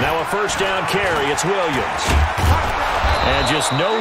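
Football players' pads clash in a tackle.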